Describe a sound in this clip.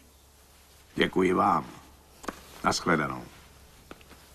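An older man answers briefly in a calm voice.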